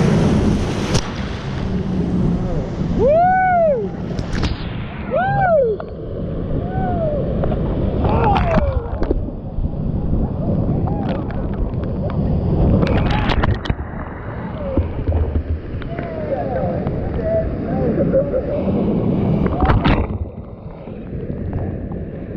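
Waves crash and splash over the front of a raft.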